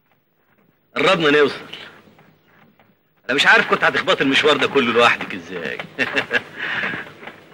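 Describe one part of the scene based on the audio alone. A man speaks loudly with animation, close by.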